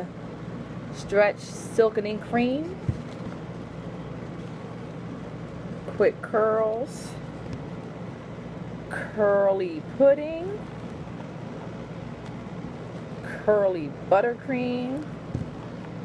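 A woman talks calmly and close by, in short bursts.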